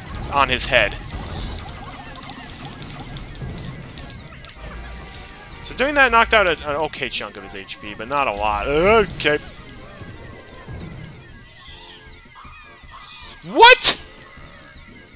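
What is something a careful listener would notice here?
Small creatures in a video game squeal and chirp in high, gliding bursts.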